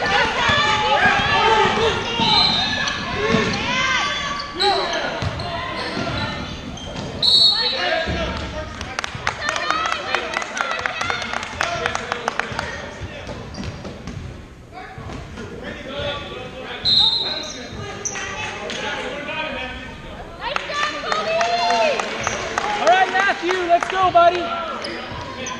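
Voices of spectators chatter and call out in a large echoing gym.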